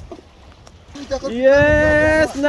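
Water splashes around a man wading through shallow water.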